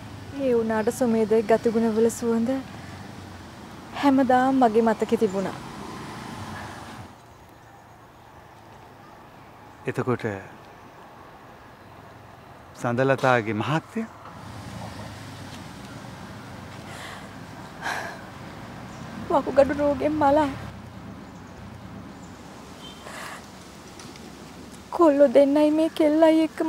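A middle-aged woman speaks emotionally, close by.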